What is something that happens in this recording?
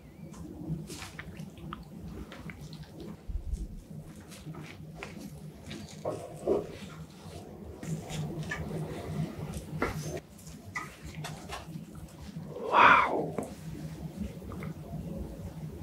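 Gloved hands press and tear a soft cream cake with quiet squishing sounds.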